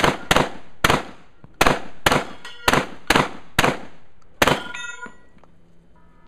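Steel targets clang when hit.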